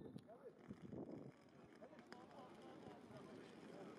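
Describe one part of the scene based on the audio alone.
Suitcase wheels roll over pavement.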